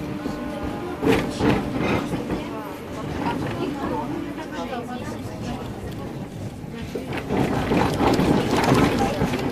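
Tram wheels clatter over rail joints.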